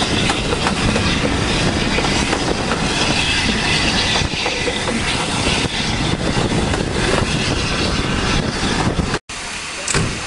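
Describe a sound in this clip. A train rumbles along the tracks at speed.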